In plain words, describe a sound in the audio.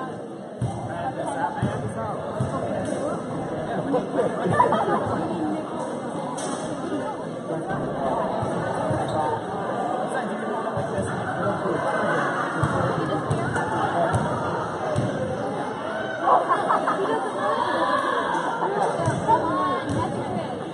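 A crowd of spectators chatters throughout a large echoing gym.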